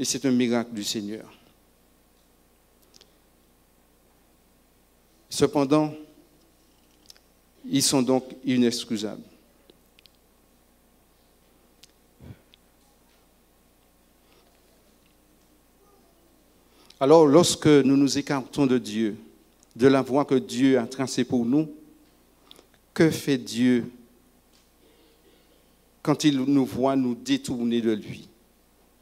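A man speaks into a microphone in short phrases with long pauses.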